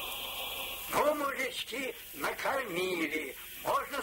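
An elderly man speaks with animation, heard through an old, muffled recording.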